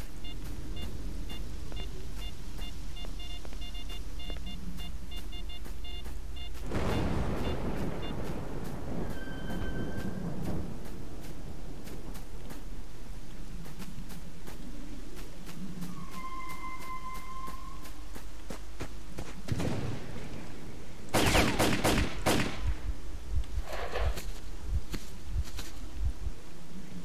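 Footsteps crunch steadily over dry ground.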